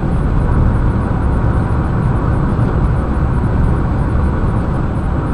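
A car drives steadily along a smooth road, with a low rumble of tyres and engine.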